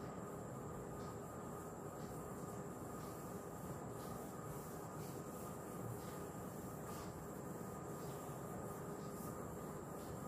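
An eraser wipes across a whiteboard.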